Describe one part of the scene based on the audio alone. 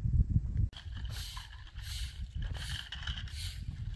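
A broom sweeps across dry ground with scratchy strokes.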